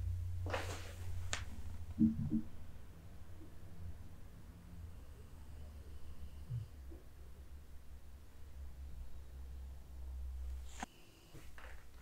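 A pen marker scratches softly on skin.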